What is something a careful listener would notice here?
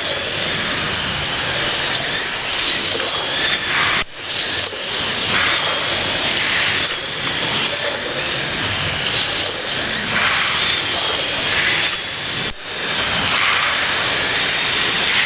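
Slot cars whine as they speed past on a track, rising and falling again and again.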